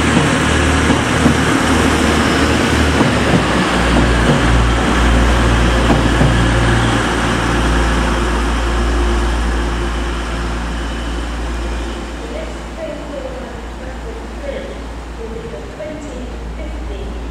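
A diesel engine hums low and steady.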